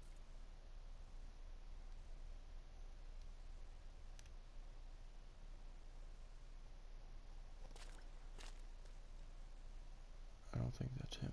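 Wind blows softly through trees outdoors.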